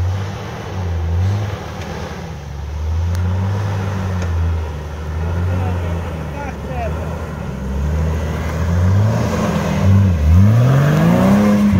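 An off-road vehicle's engine rumbles and revs as it climbs over rocks.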